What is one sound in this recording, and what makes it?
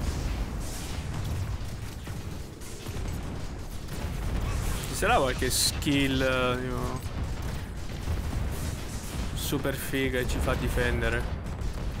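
Game spaceships fire weapons in a rumbling battle.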